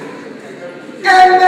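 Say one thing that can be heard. A woman speaks loudly.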